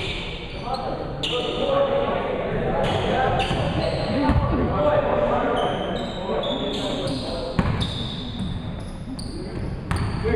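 A basketball bounces on a hardwood floor in an echoing gym.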